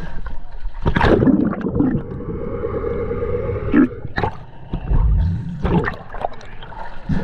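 Water bubbles and rumbles underwater.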